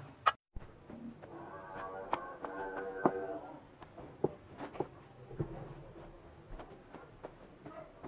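A brush scrapes across a rough mould.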